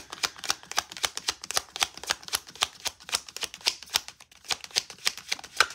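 Paper cards are shuffled quickly, riffling and flicking close by.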